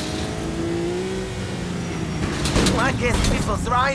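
A car engine revs as the car drives along.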